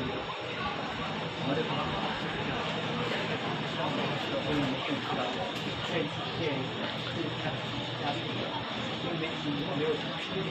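A train carriage hums steadily.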